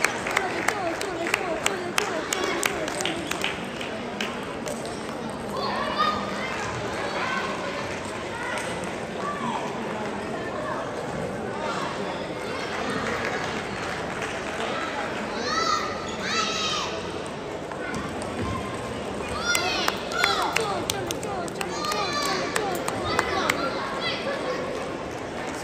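A crowd of players murmurs and calls out in the hall.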